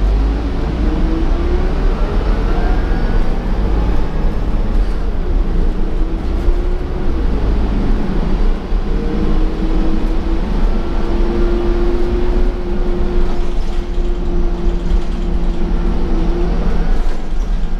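A bus motor whines, rising and falling in pitch.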